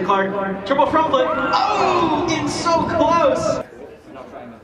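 Young spectators cheer and shout loudly.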